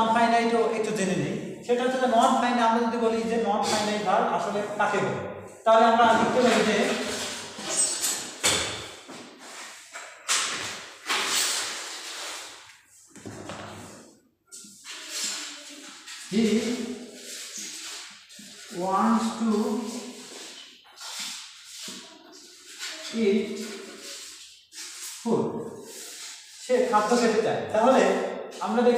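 A young man speaks clearly and steadily, as if teaching, in a room with some echo.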